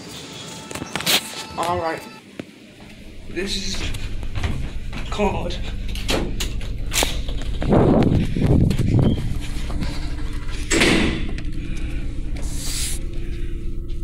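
A phone rubs and knocks against clothing.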